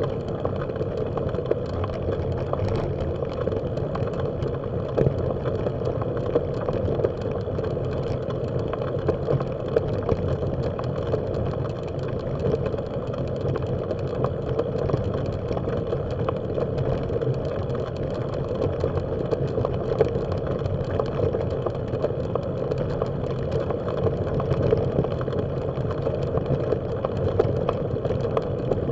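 Tyres crunch steadily over gravel.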